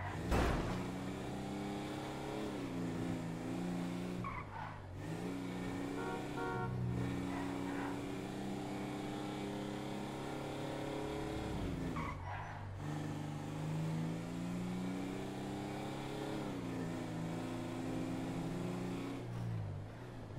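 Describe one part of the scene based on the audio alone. A car engine hums steadily, rising and dropping in pitch as gears change.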